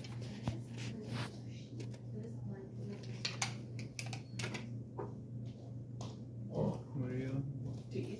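Small metal parts click and clink as they are handled.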